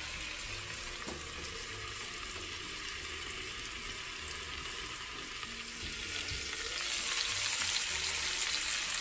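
Meat sizzles in a frying pan, muffled under a lid and then louder once the lid comes off.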